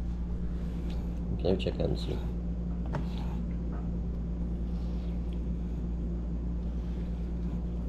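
A knife taps on a wooden board.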